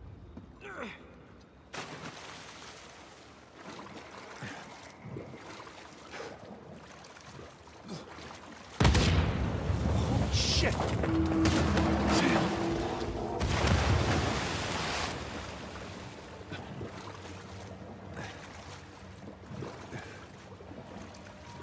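Water splashes and sloshes with swimming strokes.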